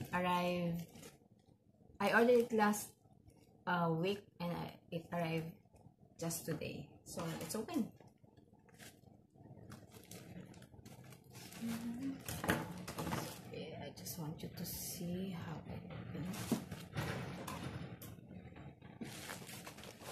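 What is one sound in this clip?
A plastic package crinkles and rustles in hands.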